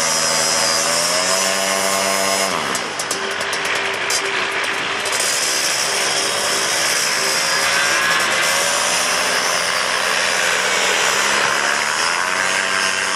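A paramotor engine roars close by, its pitch rising and falling as it revs.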